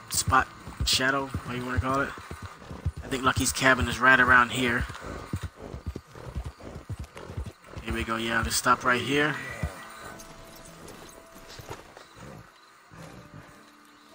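A horse's hooves thud steadily on a dirt trail.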